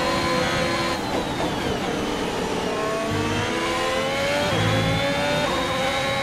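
A racing car engine drops in pitch as the car brakes, then climbs again.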